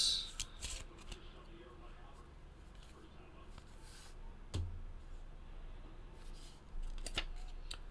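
Plastic card cases and cards click and rustle in hands.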